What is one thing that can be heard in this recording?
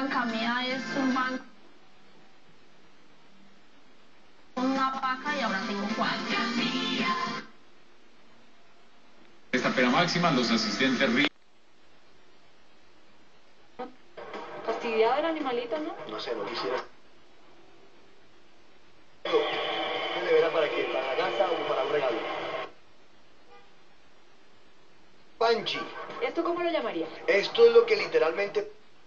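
Television sound plays in short bursts, cutting off into silence between channels.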